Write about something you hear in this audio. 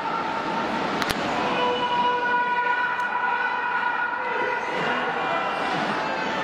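A large crowd murmurs and cheers steadily in a big echoing hall.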